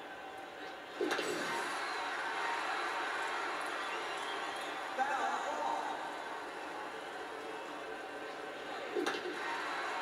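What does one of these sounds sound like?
A baseball bat cracks against a ball, heard through a television speaker.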